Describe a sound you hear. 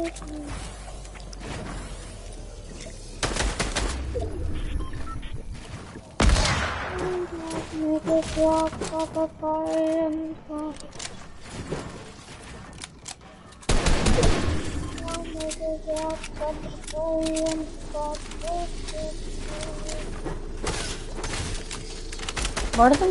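Video game building pieces clatter into place rapidly.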